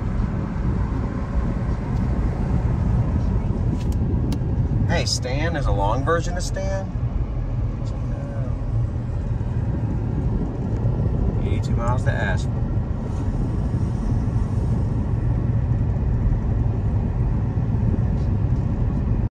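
A car's engine hums and its tyres rumble steadily on the road.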